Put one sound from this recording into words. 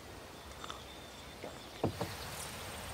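A man slurps a drink from a mug.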